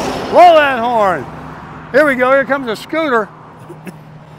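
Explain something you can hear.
A man shouts loudly toward passing traffic.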